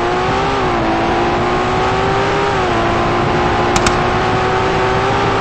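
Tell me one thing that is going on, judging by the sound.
A car engine drones loudly, dropping in pitch briefly as it shifts gears while speeding up.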